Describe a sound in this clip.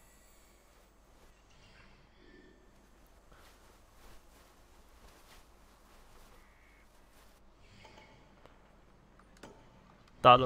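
An eagle screeches overhead.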